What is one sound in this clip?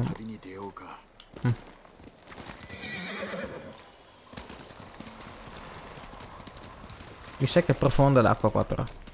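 A horse gallops with thudding hooves.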